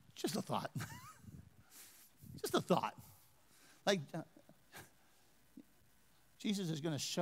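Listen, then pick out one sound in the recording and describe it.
A man speaks into a microphone in a large hall, pausing between phrases.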